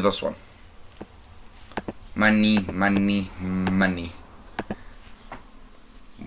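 Short menu clicks sound as selections are made.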